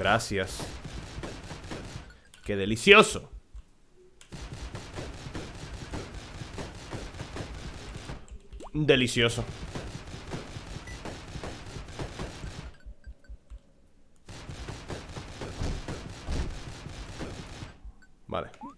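Game gunfire crackles in quick bursts.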